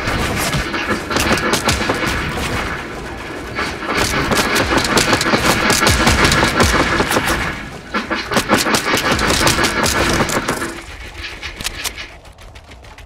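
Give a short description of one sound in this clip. Game building pieces snap into place with rapid clunks and knocks.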